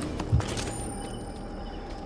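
Footsteps patter on a hard path.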